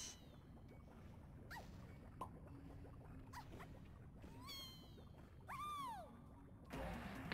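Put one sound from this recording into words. Video game sound effects chime and whoop in quick glides.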